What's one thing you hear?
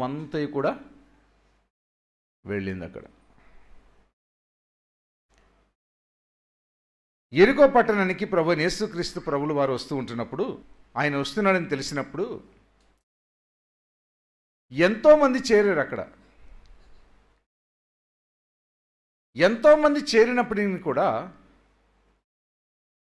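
A middle-aged man preaches with emphasis into a microphone, pausing between phrases.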